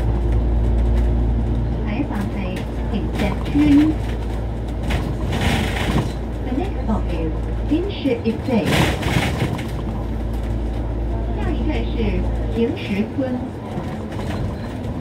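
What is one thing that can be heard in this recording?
A bus engine rumbles low and steady while driving.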